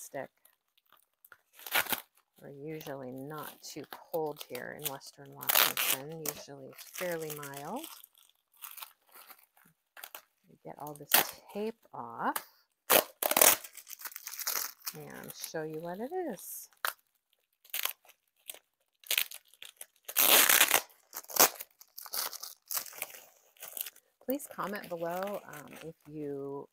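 Paper rustles and crinkles as it is unwrapped.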